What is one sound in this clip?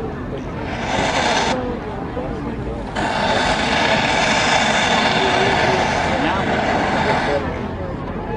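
A man announces a call over a stadium loudspeaker, echoing across an open field.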